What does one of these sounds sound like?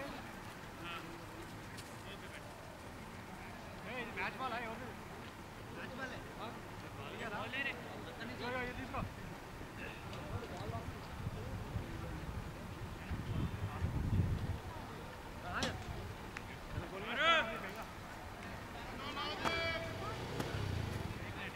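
Men shout and call out to each other outdoors, at some distance.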